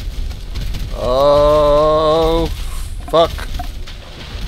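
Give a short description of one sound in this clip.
A man speaks loudly into a microphone, close by.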